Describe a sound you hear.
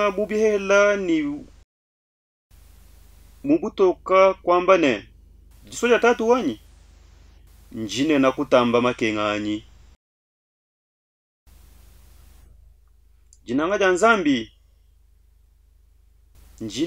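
A man speaks with feeling close to a microphone, in short phrases with pauses.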